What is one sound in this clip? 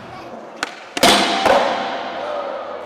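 Skateboard wheels roll loudly over concrete in a large echoing hall.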